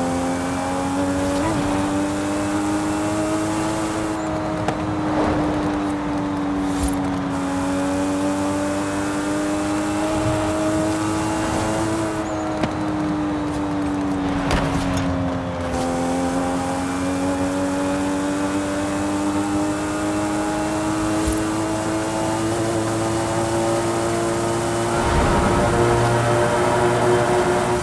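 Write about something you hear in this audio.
A car engine roars steadily at high revs, its pitch rising and dipping with gear changes.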